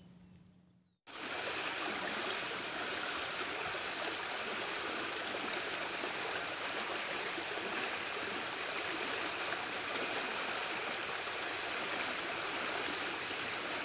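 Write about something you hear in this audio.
Muddy water rushes loudly over rocks.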